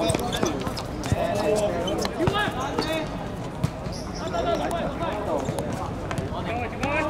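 Several young men shout and call out to each other outdoors.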